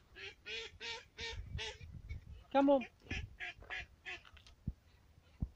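A goose honks loudly over and over.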